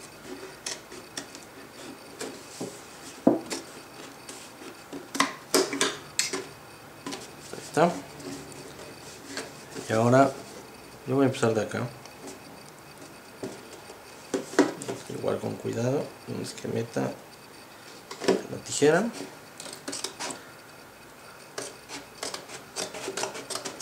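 A plastic jug crinkles and creaks as it is handled.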